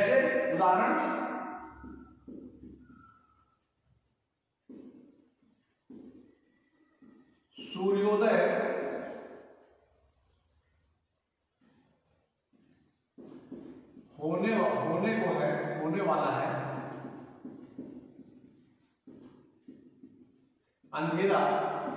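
A man speaks calmly in a room with some echo, pausing often.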